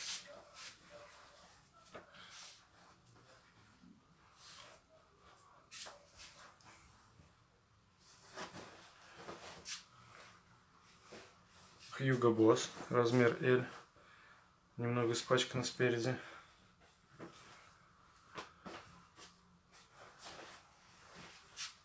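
Hands smooth and rustle a cotton shirt.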